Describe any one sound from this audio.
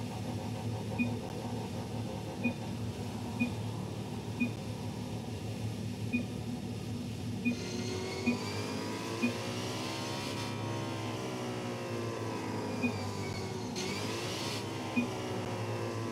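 Short chimes ping now and then as messages pop up.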